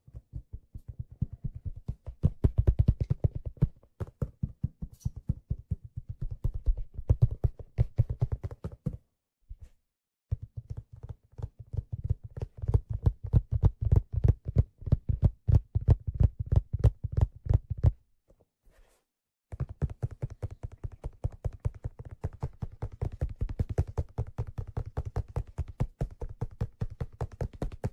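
Fingers tap rapidly on a hollow leather-covered object close to a microphone.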